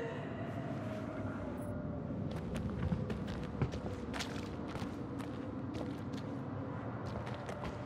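Footsteps creak on wooden boards.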